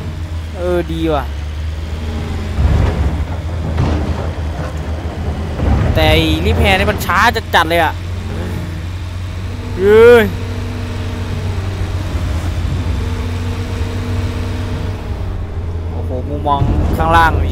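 A diesel excavator engine rumbles steadily.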